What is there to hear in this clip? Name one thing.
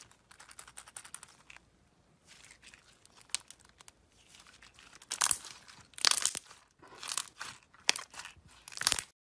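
Hands squish and squeeze sticky slime, with wet crackling and popping.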